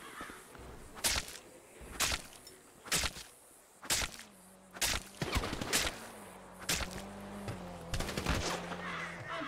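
Blows land on a body with sharp thuds.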